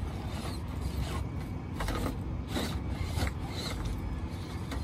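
Rocks click and clatter under a toy truck's tyres.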